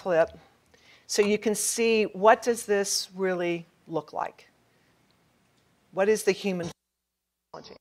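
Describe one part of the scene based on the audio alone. A middle-aged woman speaks into a microphone.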